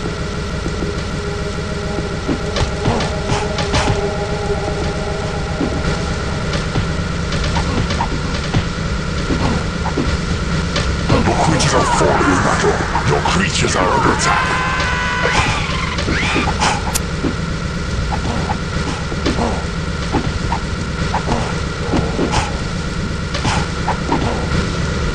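Metal weapons clash and clank in short knocks.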